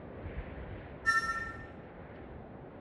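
A short sparkling chime sounds.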